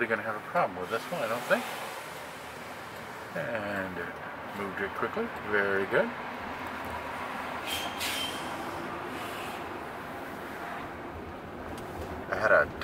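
An adult man talks calmly nearby.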